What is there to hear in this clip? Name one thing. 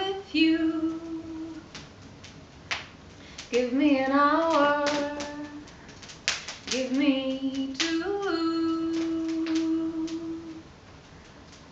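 A young woman sings long, held notes close to a microphone.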